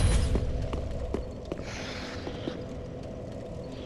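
Armoured footsteps clink on a stone floor.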